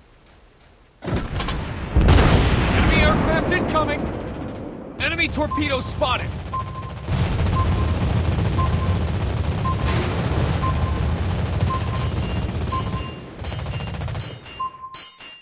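Heavy naval guns fire in loud, booming blasts.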